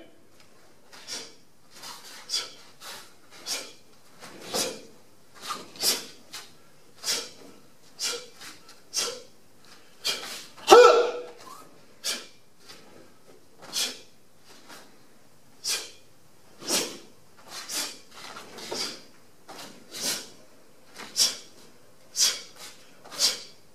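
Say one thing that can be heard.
A martial arts uniform snaps with each punch and kick.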